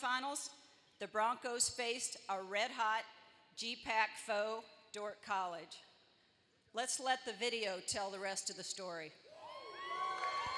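A middle-aged woman speaks calmly through a microphone in a large echoing hall.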